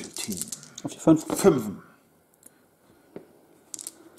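Dice rattle in a cupped hand.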